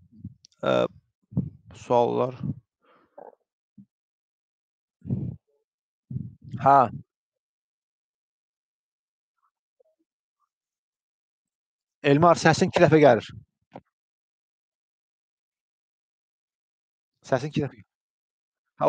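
A young man speaks calmly and haltingly into a headset microphone, close by.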